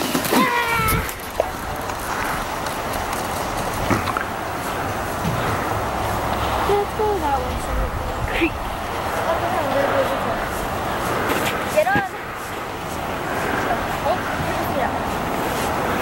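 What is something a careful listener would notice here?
A sled scrapes and hisses as it slides over snow.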